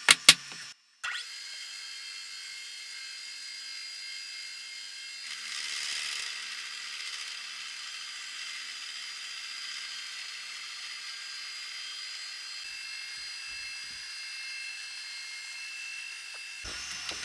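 A milling machine cuts metal with a steady high whine.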